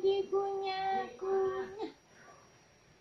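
A young woman sings softly up close.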